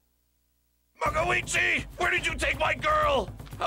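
A man speaks gruffly, close by.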